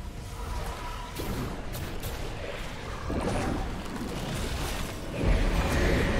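Fast clicks of game attacks hit repeatedly.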